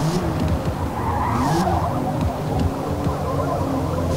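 Tyres squeal as a car slides through a bend.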